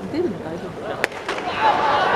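A baseball pops into a catcher's mitt in a large domed stadium.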